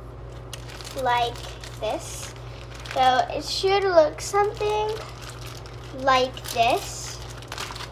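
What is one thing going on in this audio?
A young girl speaks close by, calmly.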